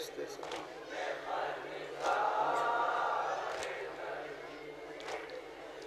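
A young man chants a lament loudly through a microphone and loudspeakers.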